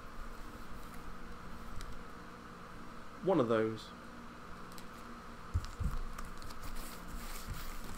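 A plastic-wrapped shirt rustles as it is folded.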